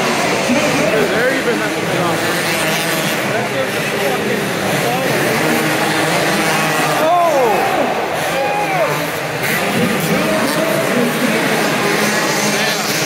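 Dirt bike engines rev and whine loudly in a large echoing arena.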